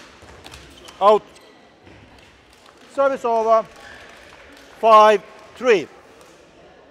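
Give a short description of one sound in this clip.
Sports shoes squeak sharply on a court floor.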